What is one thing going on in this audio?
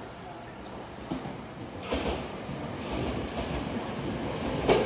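A train pulls into a station, rumbling and screeching louder as it nears.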